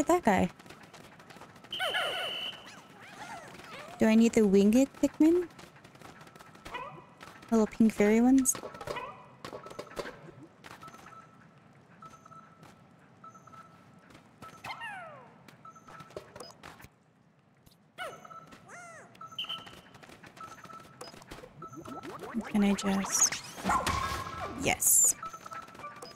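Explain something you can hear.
Small cartoon creatures chirp and squeak in high, wobbly voices.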